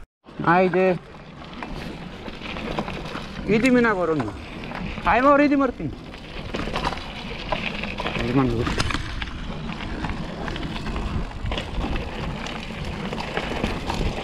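Bicycle tyres crunch over loose gravel.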